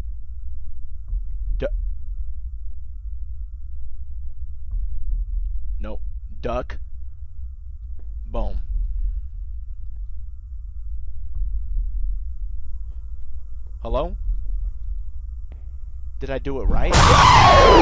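A young man speaks in short bursts, close to a microphone.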